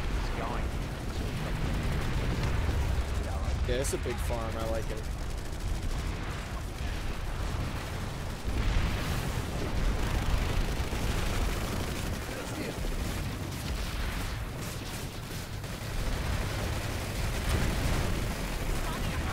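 Explosions and gunfire boom and crackle repeatedly.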